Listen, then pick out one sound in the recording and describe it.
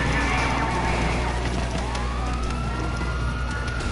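A motorcycle crashes onto a road.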